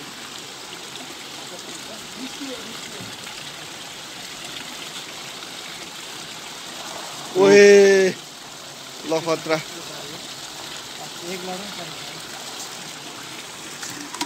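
Water pours from pipes into a concrete pond.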